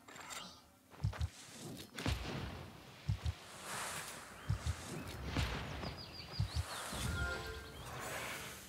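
Heavy thuds and magic blasts ring out in a fight.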